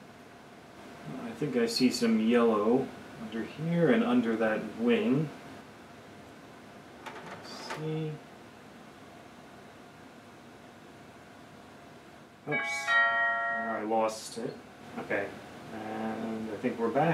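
A young man speaks calmly and close by, explaining.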